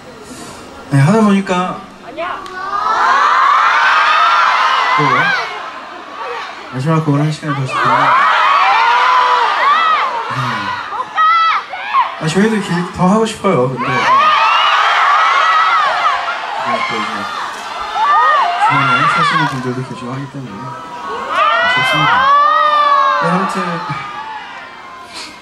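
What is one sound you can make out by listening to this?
A young man speaks into a microphone through loudspeakers in a large hall.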